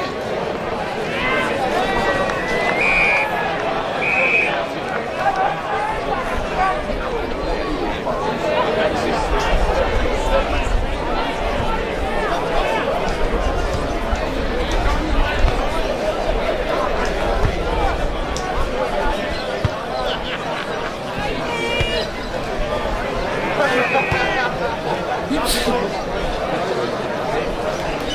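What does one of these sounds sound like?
Players shout to each other outdoors across an open field.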